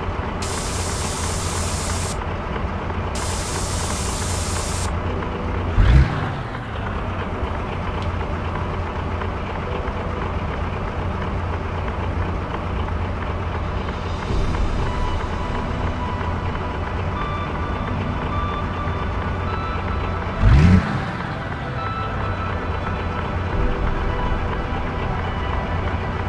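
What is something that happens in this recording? A truck engine rumbles steadily at low speed.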